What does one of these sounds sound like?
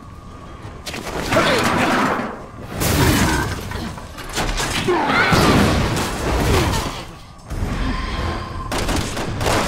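Two people struggle and thud against each other.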